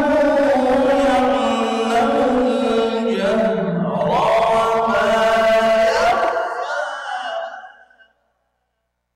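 A man chants in a long, melodic voice through a microphone, with echo, then falls silent.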